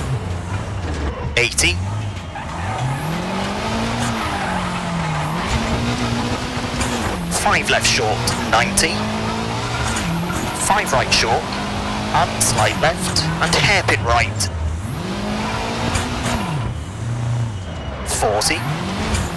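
A rally car engine revs hard, rising and falling as the gears change.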